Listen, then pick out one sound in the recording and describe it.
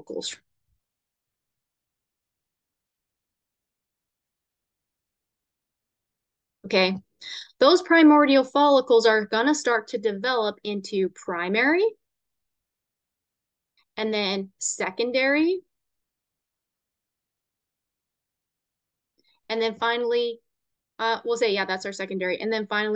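A woman speaks calmly through a microphone, with pauses.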